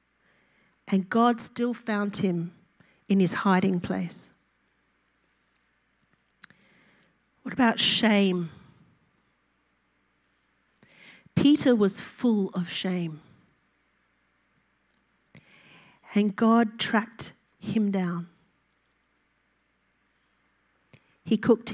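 A woman speaks calmly into a microphone, with pauses between phrases.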